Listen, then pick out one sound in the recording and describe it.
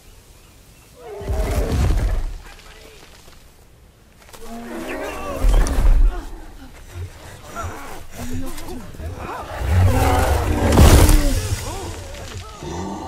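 A huge creature groans and growls deeply.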